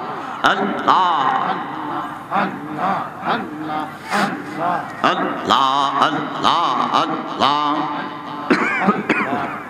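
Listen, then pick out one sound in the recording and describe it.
A young man preaches with fervour, chanting through a microphone and loudspeakers.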